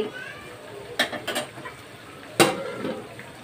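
A metal utensil clinks against a pan.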